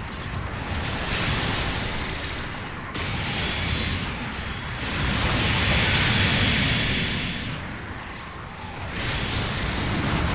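Laser beams fire with sharp electronic zaps.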